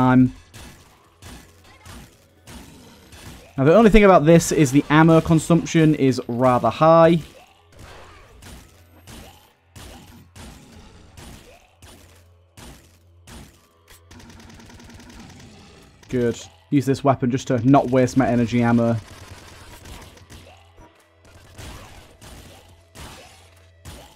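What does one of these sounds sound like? Guns fire in rapid bursts of sharp shots.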